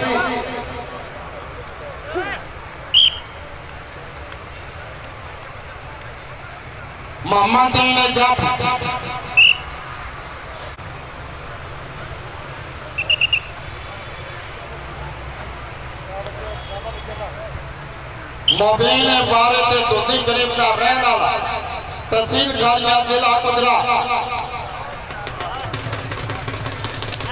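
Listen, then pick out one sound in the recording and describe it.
A large outdoor crowd murmurs in the background.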